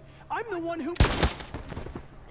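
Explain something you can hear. A gunshot bangs once, sharp and loud.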